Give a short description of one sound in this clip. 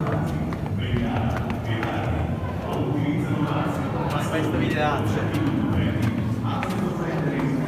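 Footsteps climb concrete stairs.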